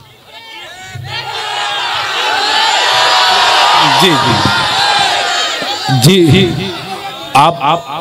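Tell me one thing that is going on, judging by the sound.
A crowd of men calls out and murmurs in approval.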